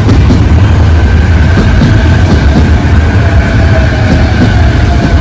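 A train's motor whines steadily as it rolls along.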